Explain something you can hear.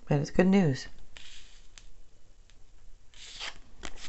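Playing cards slide and tap softly on a cloth-covered table.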